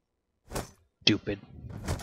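Window glass shatters and tinkles.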